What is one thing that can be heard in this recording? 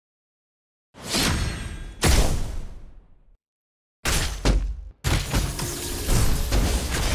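Battle effects clash and boom loudly.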